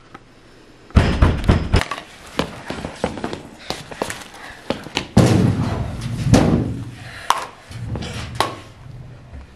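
Footsteps and scuffling thump on a hard floor.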